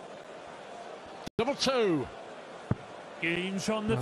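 A dart thuds into a board.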